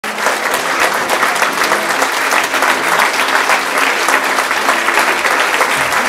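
An audience claps steadily in a large room.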